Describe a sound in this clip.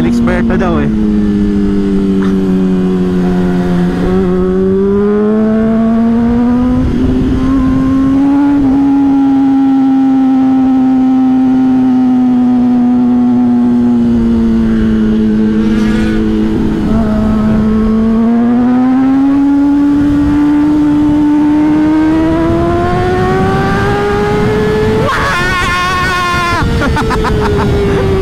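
A motorcycle engine hums steadily close by, rising and falling in pitch as it speeds up and slows.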